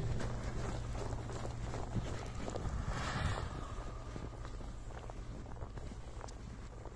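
Tyres spin and churn through deep snow.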